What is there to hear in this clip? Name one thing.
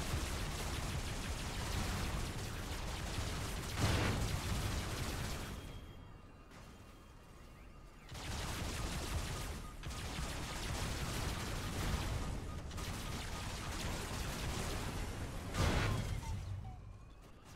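Jet thrusters roar loudly and steadily.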